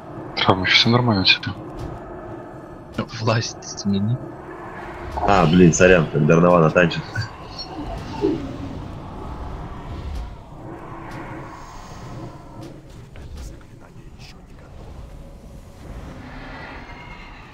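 Magic spells whoosh and crackle in a fierce battle.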